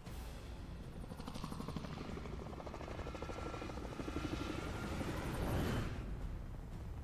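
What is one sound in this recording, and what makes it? Helicopter rotors thud in a fast, pulsing chop that swells louder.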